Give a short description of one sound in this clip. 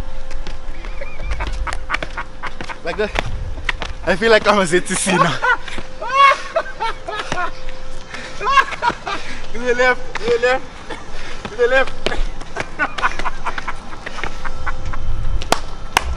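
Shoes scuff and tap on paving stones.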